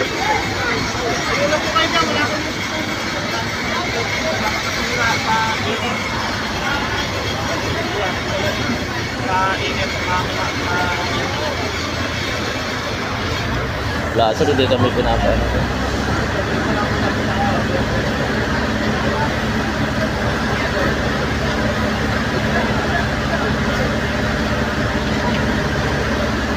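A crowd of people shouts and talks excitedly nearby.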